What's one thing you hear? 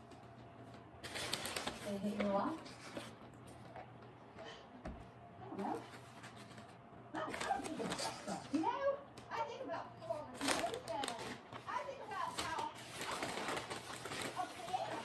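A paper bag rustles and crinkles.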